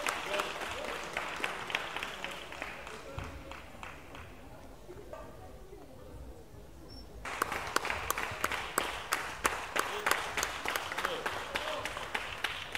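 A crowd claps rhythmically in a large echoing hall.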